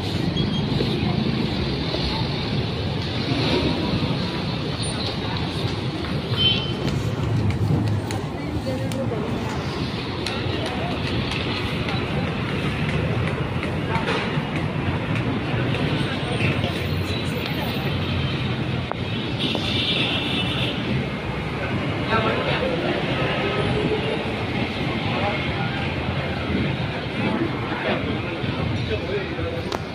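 A crowd of people talks in a busy outdoor street market.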